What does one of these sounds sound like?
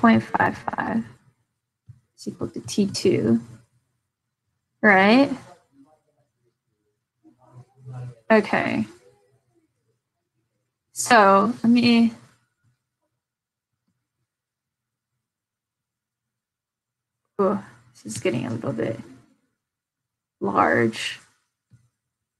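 A young woman speaks calmly into a close microphone, in short phrases with pauses.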